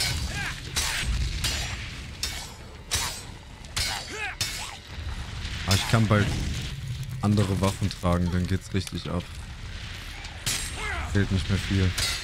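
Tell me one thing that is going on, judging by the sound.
Fireballs burst with a whoosh.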